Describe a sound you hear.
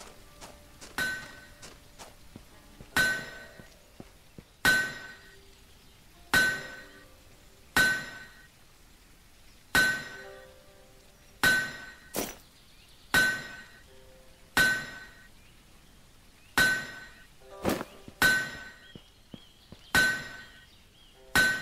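A hammer strikes metal on an anvil in steady, ringing blows.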